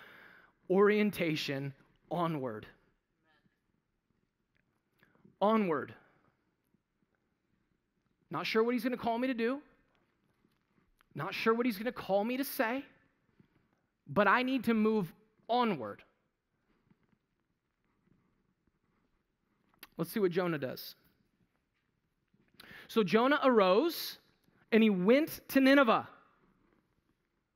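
A man speaks with animation through a headset microphone, in short bursts with pauses.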